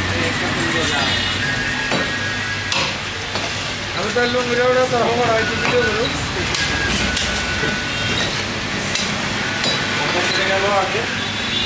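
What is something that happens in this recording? A cleaver chops sharply into a wooden block.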